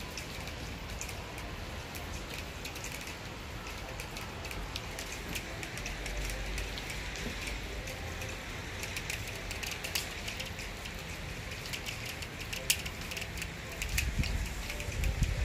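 Wet snow patters on leaves.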